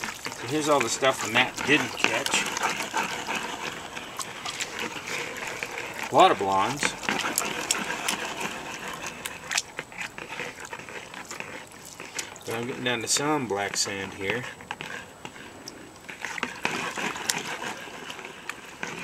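Water sloshes as a pan is swirled and dipped in a tub.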